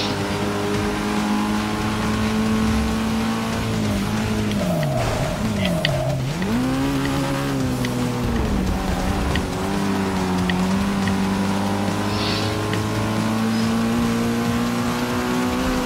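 A car engine roars, drops in pitch while braking, then revs up again.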